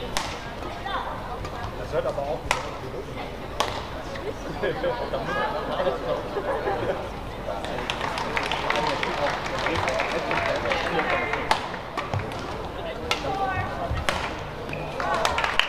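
Sports shoes squeak on a hard court.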